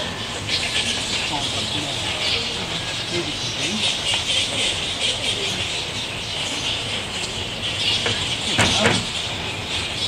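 Wooden boards scrape and knock as they slide into place.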